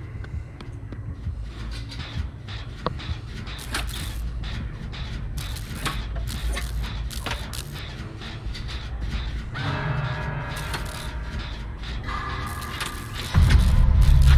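Metal parts of a machine clank and rattle under repair.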